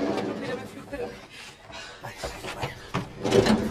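Footsteps thud on a hollow floor.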